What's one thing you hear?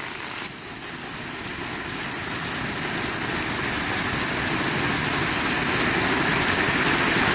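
Heavy rain pours down steadily and grows louder.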